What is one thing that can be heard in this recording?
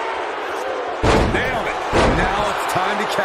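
A body slams heavily onto a wrestling mat with thuds.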